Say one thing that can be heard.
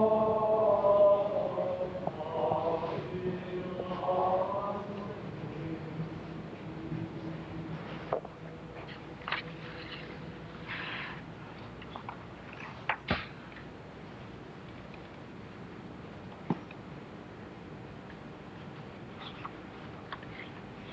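A crowd murmurs softly in a large echoing hall.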